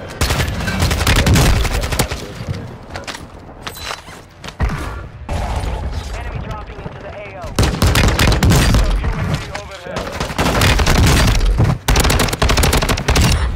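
Rapid gunfire bursts ring out loudly, close by.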